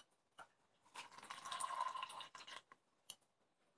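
A drink pours into a glass and fizzes.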